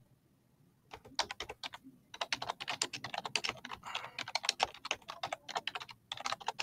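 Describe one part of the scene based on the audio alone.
Keys on a keyboard click quickly as someone types.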